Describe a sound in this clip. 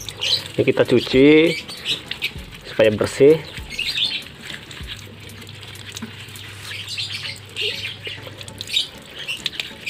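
Water runs from a tap in a thin stream.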